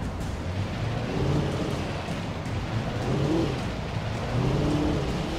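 Tyres roll over rough ground.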